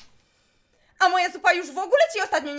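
A young woman speaks nearby in a strained voice.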